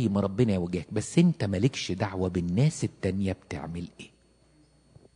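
An elderly man speaks with animation through a microphone in an echoing hall.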